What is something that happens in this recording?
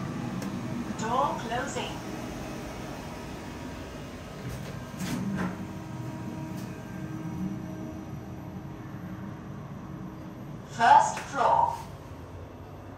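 An elevator chime rings out with a short ding.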